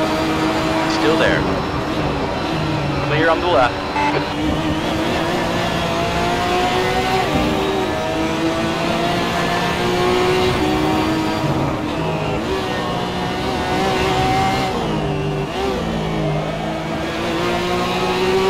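A racing car engine roars and revs steadily, changing pitch as gears shift.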